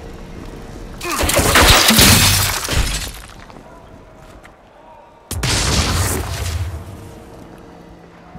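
A magical rift roars with a rushing whoosh.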